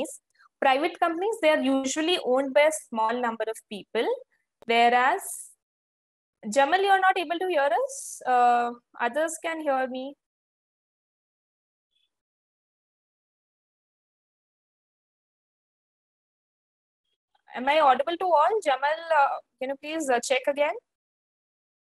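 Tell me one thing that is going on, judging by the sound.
A young woman speaks calmly and clearly into a close microphone, with long pauses.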